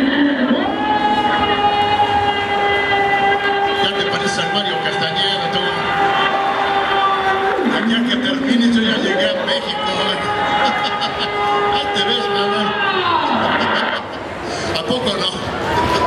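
A large crowd of young people cheers and chatters loudly.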